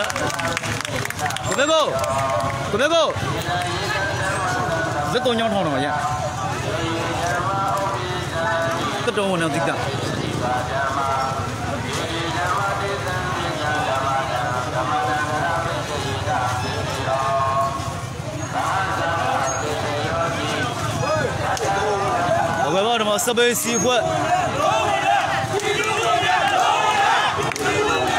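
Men and women in the crowd shout close by.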